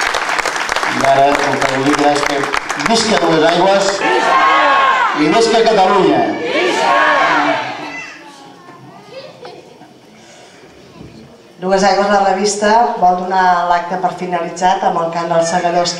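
A group of men and women sings together nearby.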